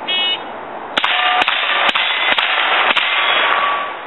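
Gunshots ring out in quick succession outdoors, each followed by a short echo.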